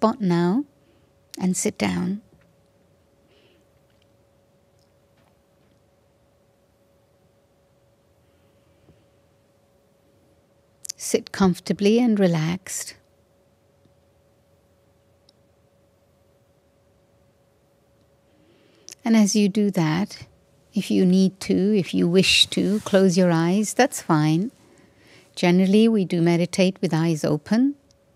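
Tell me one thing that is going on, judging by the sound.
An elderly woman speaks slowly and calmly into a microphone, with long pauses.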